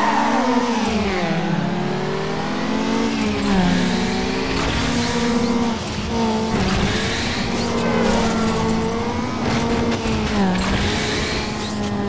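A car engine revs hard, rising and dropping in pitch as the gears shift.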